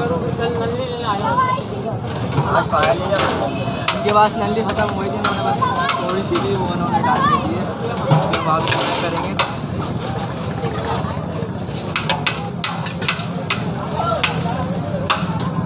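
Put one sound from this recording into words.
Utensils clink and clatter nearby.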